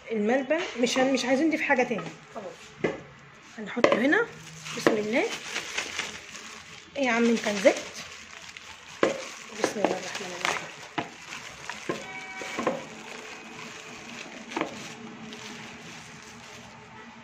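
A plastic bag crinkles as it is squeezed and handled.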